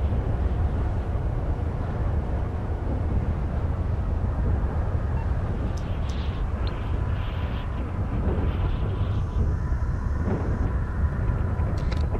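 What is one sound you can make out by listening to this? A helicopter engine drones steadily with a low rotor rumble.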